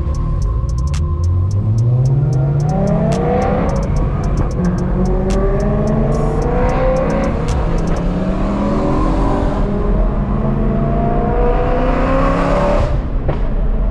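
A car engine roars and climbs in pitch as it speeds up, shifting gears.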